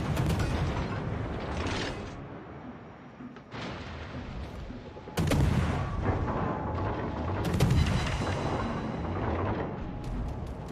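Heavy naval guns fire with deep booming blasts.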